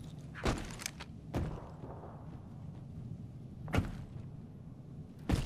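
Loud gunshots bang now and then, each with a short echo.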